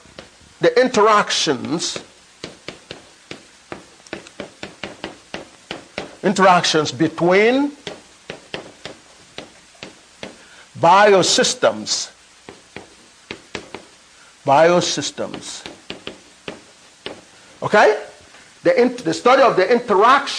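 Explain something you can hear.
A man speaks loudly with animation in short bursts, with pauses between.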